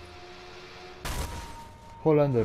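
A motorbike crashes with a loud thud.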